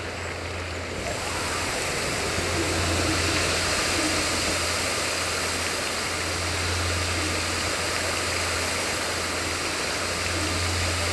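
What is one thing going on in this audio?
A burst of water surges up with a loud roar.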